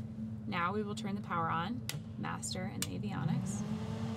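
Switches click as they are flipped.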